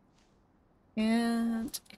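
A young woman makes a short sustained sound with her voice close to a microphone.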